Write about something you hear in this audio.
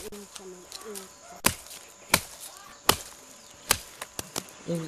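A machete chops sharply into wood in sharp, separate blows.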